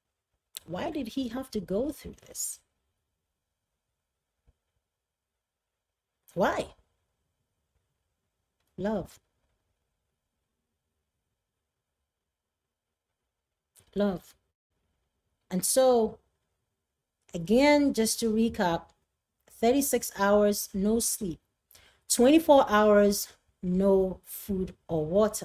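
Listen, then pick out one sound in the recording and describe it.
A woman speaks calmly and with feeling into a close microphone, with long pauses.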